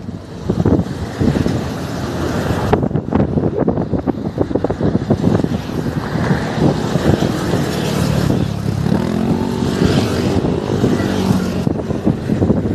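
Motorcycles drone past in a group.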